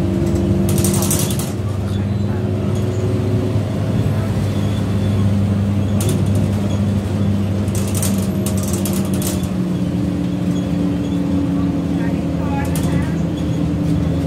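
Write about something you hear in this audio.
The bus body rattles and clatters over the road.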